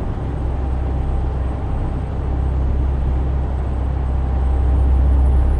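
A truck engine rumbles steadily at cruising speed.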